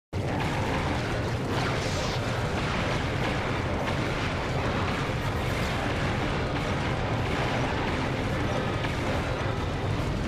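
Laser blasts fire rapidly.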